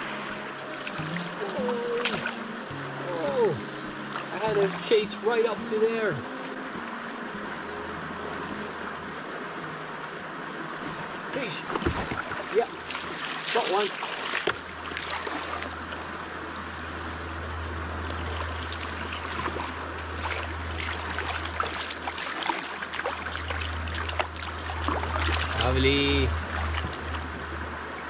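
A shallow river rushes and ripples around a wading man's legs.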